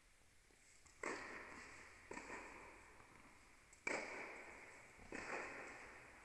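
Tennis balls are struck with rackets, each hit echoing through a large hall.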